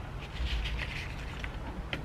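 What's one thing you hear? A spray bottle spritzes liquid.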